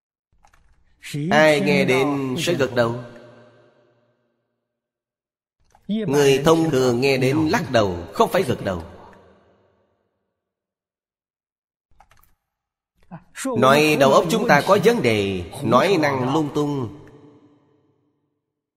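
An elderly man speaks calmly and expressively into a close microphone, in short phrases with pauses.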